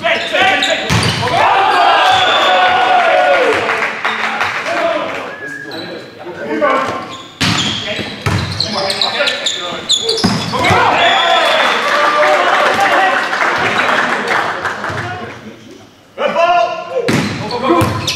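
A volleyball is struck hard with a loud smack.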